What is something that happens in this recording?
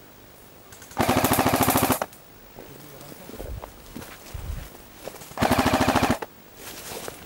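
A gun fires rapid bursts close by.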